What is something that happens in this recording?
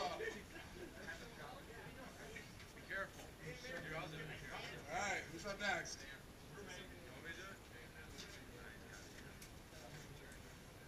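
Several young men talk and call out nearby.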